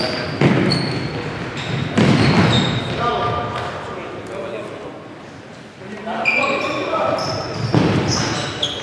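A futsal ball is kicked with a thud that echoes around a hall.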